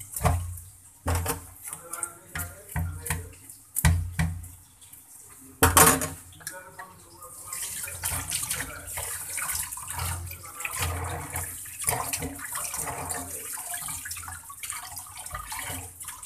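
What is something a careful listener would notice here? Hands rub and scrub a wet fish.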